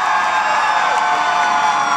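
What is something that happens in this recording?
A young woman shouts excitedly into a microphone.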